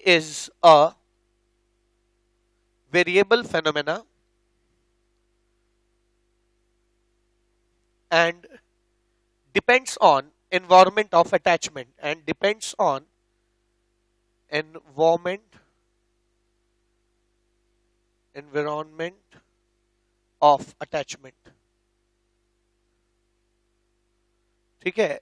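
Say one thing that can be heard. A man speaks calmly into a headset microphone, in short bursts with pauses.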